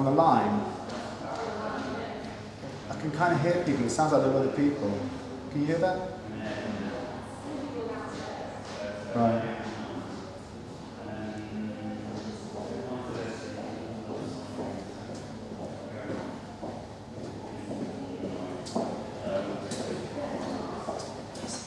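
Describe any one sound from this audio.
A man talks on a phone close by.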